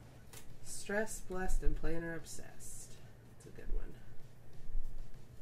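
A sticker peels softly off its backing sheet.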